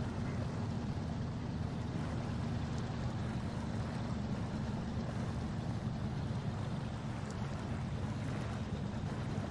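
Water splashes around a truck's wheels as it drives through a river.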